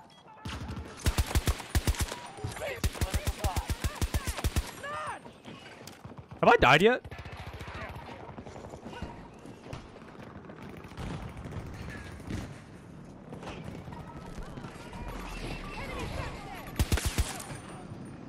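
Rapid gunfire bursts out in short volleys.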